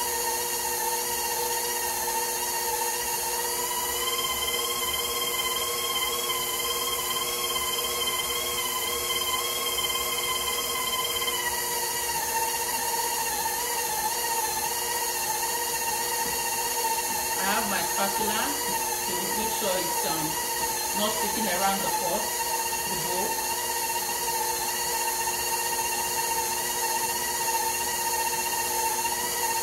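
An electric stand mixer whirs steadily, its pitch dropping a little partway through.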